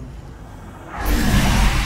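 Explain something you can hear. A crackling energy blast roars loudly.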